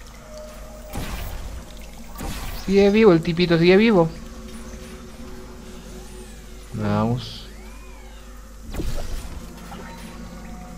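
A portal gun fires with a sharp electronic zap.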